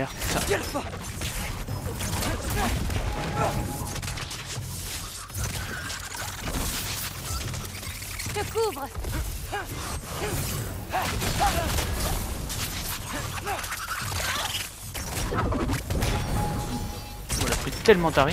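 Arrows whoosh and strike with sharp impacts.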